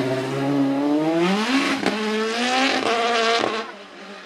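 A racing car accelerates away, its engine note climbing and then fading.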